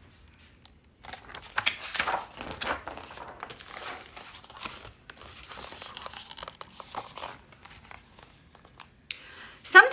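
Pages of a large book rustle and flap as they turn.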